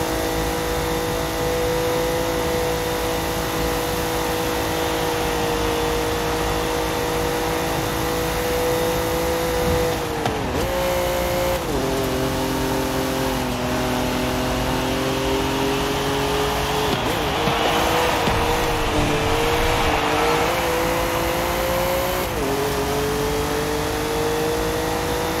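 A racing car engine roars at high speed, its pitch dipping and rising with gear changes.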